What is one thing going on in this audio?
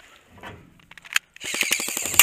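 A magazine clicks into an airsoft pistol.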